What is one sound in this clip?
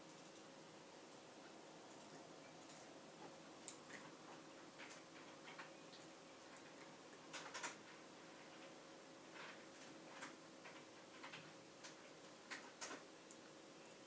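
A small dog chews and gnaws at a blanket with soft wet clicks.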